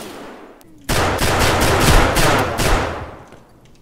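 A gun fires a burst of quick, loud shots close by.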